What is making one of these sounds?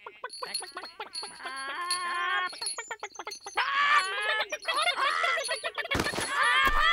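Hens cluck rapidly.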